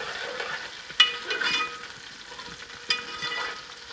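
A metal spoon clinks and scrapes against a metal pot.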